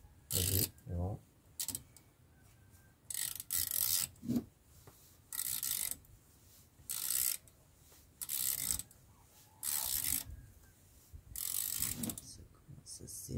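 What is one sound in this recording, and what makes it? A wrench scrapes against metal parts in short bursts.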